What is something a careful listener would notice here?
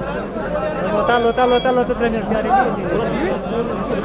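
Men chant loudly together in a crowd.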